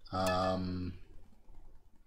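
A video game plays a short electronic tone.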